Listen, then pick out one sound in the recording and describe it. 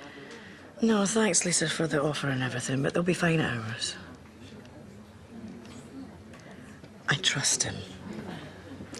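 A woman speaks quietly and emotionally, close by.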